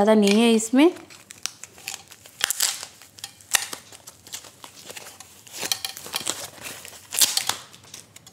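A plastic device clicks and knocks as it is handled.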